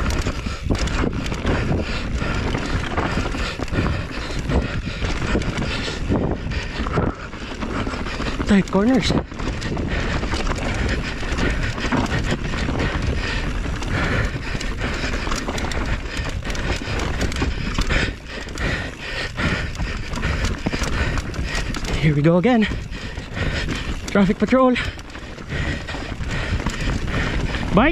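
Bike tyres rumble and crunch over a rough dirt trail at speed.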